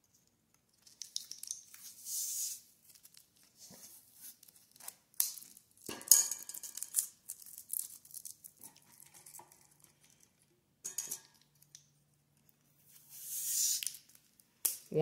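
Hands rub and slide over a plastic shell.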